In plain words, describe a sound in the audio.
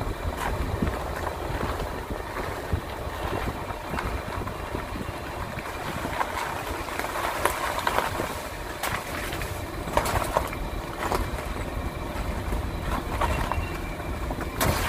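Tyres crunch and rattle over a rough, stony road.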